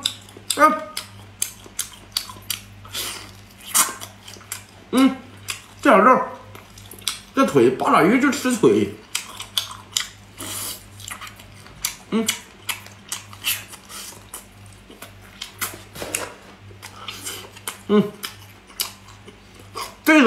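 A young man chews crunchy food loudly, with wet smacking sounds.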